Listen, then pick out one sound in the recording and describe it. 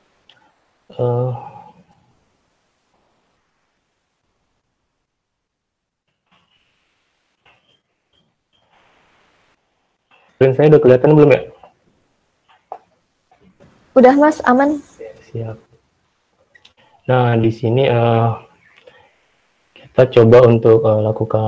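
A man speaks calmly over an online call, in short bursts.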